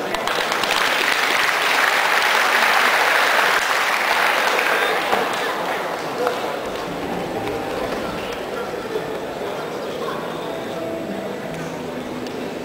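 A large crowd cheers and chatters in a big echoing hall.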